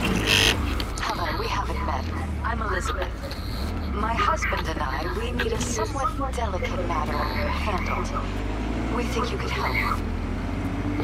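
A young woman speaks calmly over a phone call.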